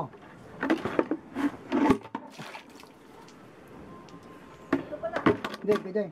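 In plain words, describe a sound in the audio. A plastic bucket knocks and scrapes on concrete.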